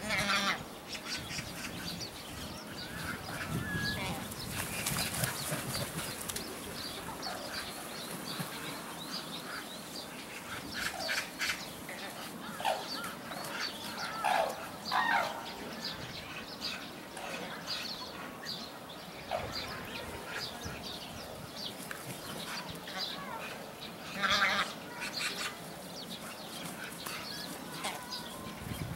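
Cranes call out loudly in bursts throughout.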